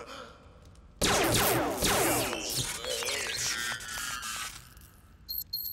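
A gun fires with a loud electronic blast.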